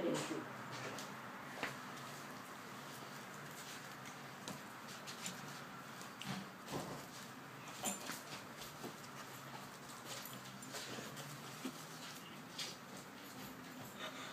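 Footsteps shuffle on a hard floor close by.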